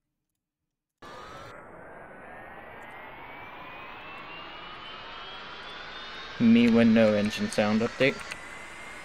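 Jet engines whine and rise steadily in pitch as an airliner speeds up.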